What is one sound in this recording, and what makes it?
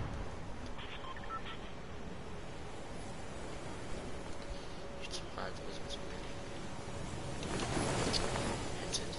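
Wind rushes steadily past during a fast glide downward.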